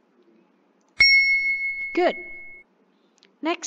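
A bright chime rings out once and fades.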